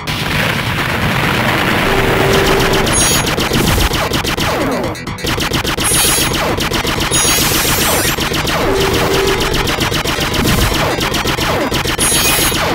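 Rapid laser shots fire in quick bursts.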